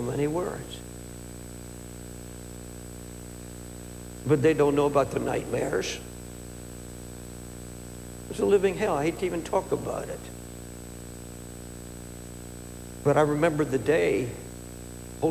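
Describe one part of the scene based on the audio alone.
An elderly man speaks slowly and deliberately through a microphone, with long pauses.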